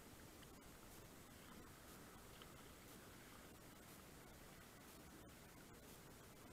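Water splashes and ripples steadily around a small boat.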